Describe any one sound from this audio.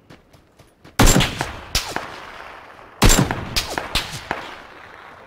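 Loud gunshots ring out one after another, each followed by a short echo.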